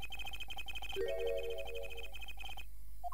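A short bright electronic chime rings out.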